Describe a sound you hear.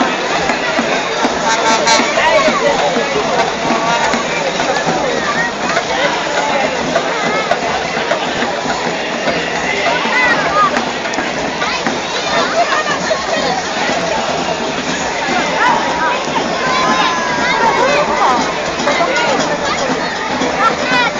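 Children and women shout and cheer excitedly nearby.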